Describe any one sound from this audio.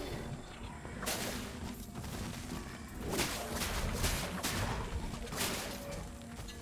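Sword blows strike and crackle in a fight.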